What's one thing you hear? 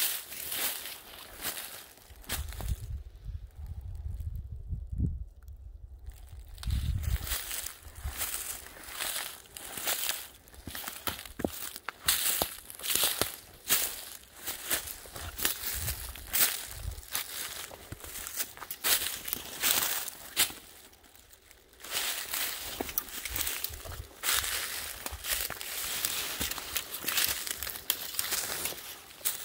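Dry leaves crunch and rustle under footsteps outdoors.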